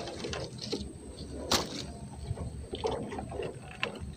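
Leaves rustle as a hand pulls at a plant.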